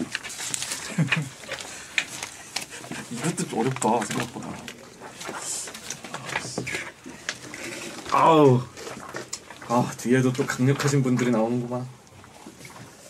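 Adult men talk and laugh loudly, close to microphones.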